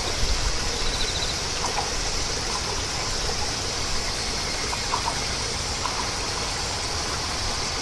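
A train rumbles faintly in the distance.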